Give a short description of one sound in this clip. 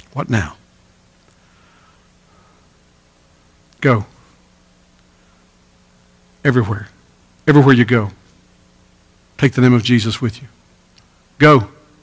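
A middle-aged man speaks forcefully in short bursts through a microphone, with pauses between phrases.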